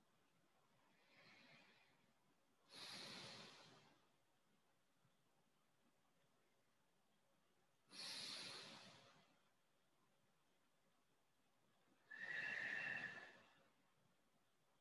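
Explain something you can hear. A man breathes in and out slowly and deeply, close by.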